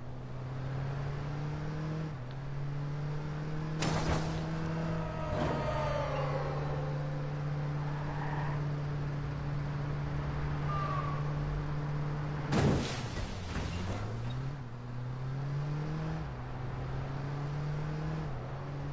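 A car engine hums steadily and shifts gears as it speeds along.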